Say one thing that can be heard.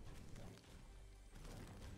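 A pickaxe strikes a roof with a sharp thwack.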